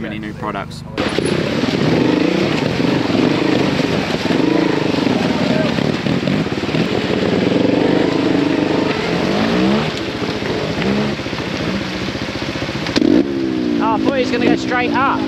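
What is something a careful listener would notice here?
A dirt bike engine revs and putters up and down close by.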